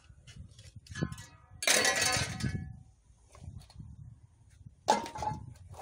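Scrap metal clanks and rattles close by.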